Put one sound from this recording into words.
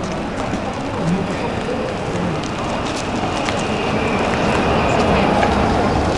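A car drives slowly past close by.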